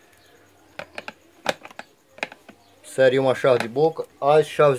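Pliers click and scrape against a plastic fan housing.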